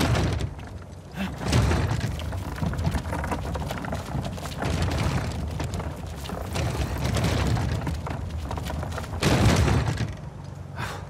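A heavy wooden crate scrapes and grinds across a stony floor.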